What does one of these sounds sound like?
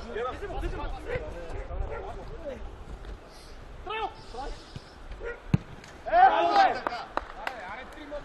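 Men shout across an outdoor pitch.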